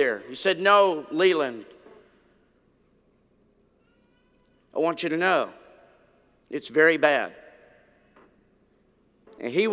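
An elderly man speaks calmly into a microphone in a large echoing hall, pausing between phrases.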